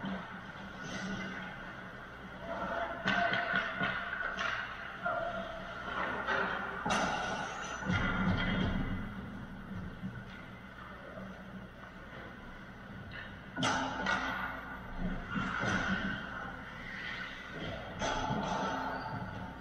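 Hockey sticks clack and pucks knock against the boards.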